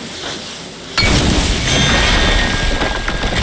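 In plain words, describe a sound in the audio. A loud burst of fiery magic roars and crackles.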